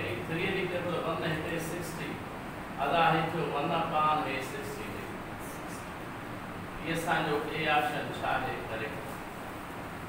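A man speaks calmly, like a teacher explaining.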